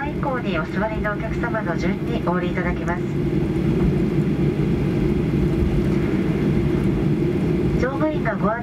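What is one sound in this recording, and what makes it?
A jet engine rumbles steadily close by.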